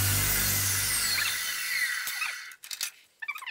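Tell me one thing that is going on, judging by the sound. A saw motor whirs and winds down.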